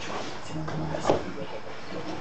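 A heavy punching bag thumps as it is hit.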